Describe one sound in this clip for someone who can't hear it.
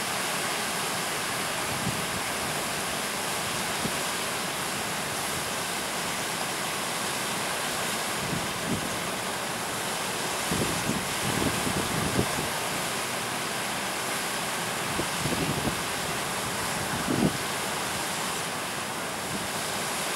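A stream rushes and splashes steadily over rocks close by.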